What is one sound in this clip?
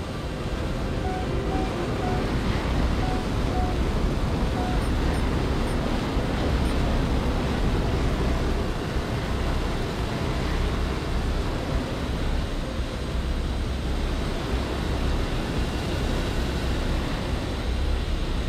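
Jet engines roar steadily as a plane flies.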